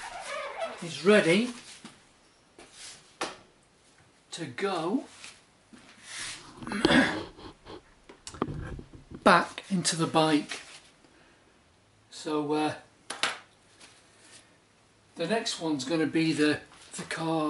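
An elderly man talks calmly and close by.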